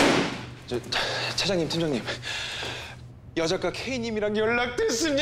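A young man speaks loudly and agitatedly, close by.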